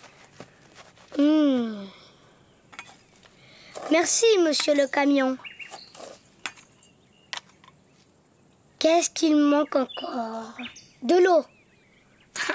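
A young child speaks with animation.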